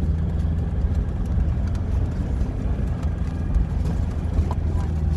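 A vehicle's body rattles and jolts over a rough dirt road.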